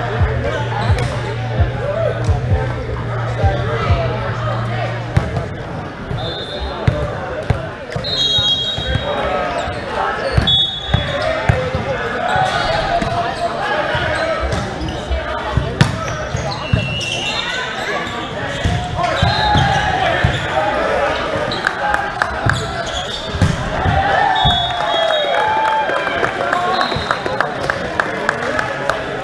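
Players call out and talk loudly across the court.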